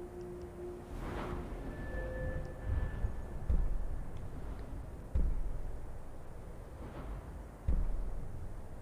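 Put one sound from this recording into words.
Deep, soft whooshes swell and fade every few seconds.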